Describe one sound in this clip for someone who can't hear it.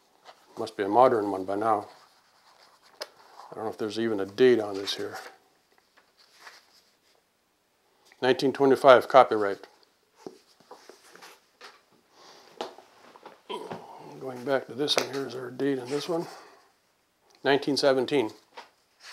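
An elderly man reads aloud calmly, close to a microphone, with pauses.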